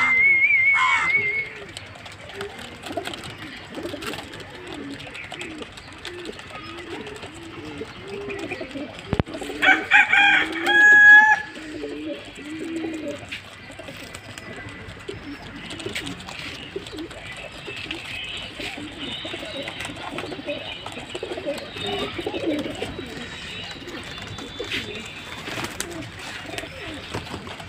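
Pigeons coo softly and repeatedly close by.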